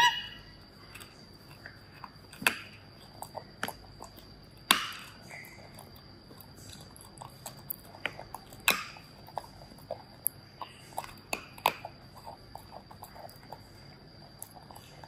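A small monkey chews and smacks its lips wetly, close by.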